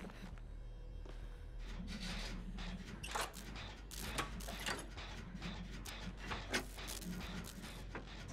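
A machine clanks and rattles as it is worked on.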